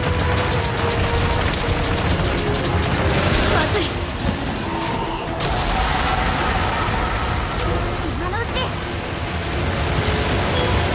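Loud game music plays throughout.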